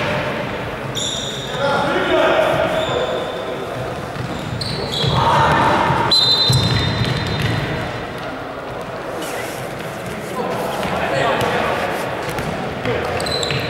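Sneakers squeak sharply on a hard floor in a large echoing hall.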